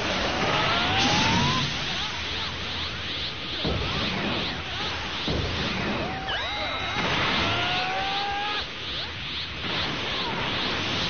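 Energy blasts whoosh and crackle in a video game fight.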